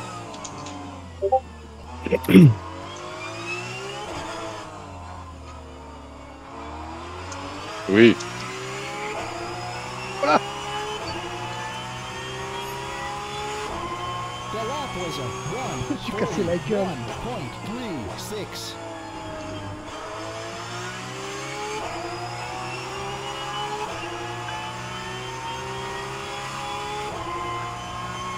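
A racing car engine revs hard, rising and falling as gears shift.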